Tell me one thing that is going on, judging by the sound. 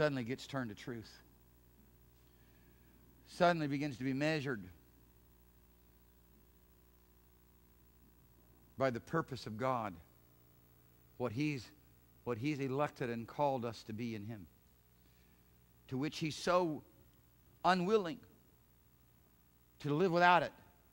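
A middle-aged man speaks with animation through a microphone, pausing often.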